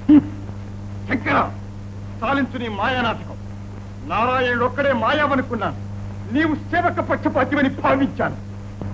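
A man declaims loudly and dramatically.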